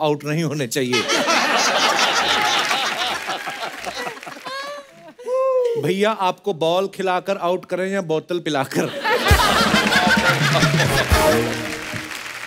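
A man laughs loudly and heartily.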